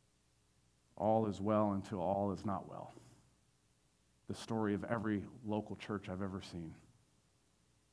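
A man speaks calmly into a microphone, heard over loudspeakers in a large room.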